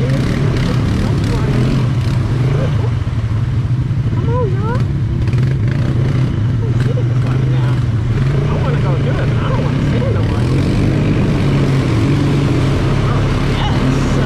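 Tyres splash and squelch through mud.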